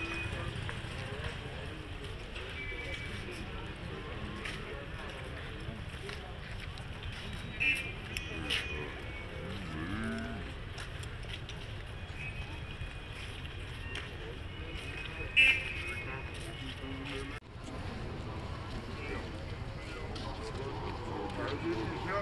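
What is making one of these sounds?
A crowd of young people murmurs and calls out nearby.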